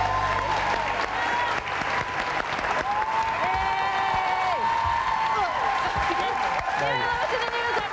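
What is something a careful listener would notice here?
An audience cheers and claps.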